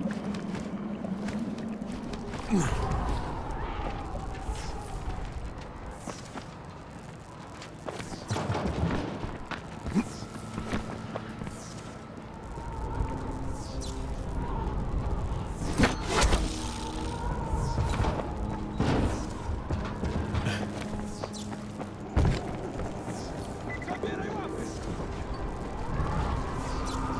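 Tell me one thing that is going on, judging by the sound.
Footsteps thud and scrape across a tiled rooftop.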